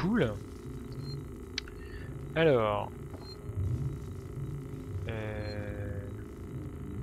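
A computer terminal chirps with short electronic sweeping tones.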